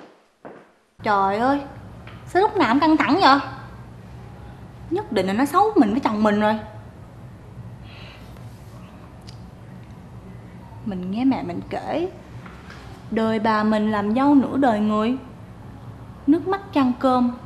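A young woman speaks close by, in a whining, complaining way.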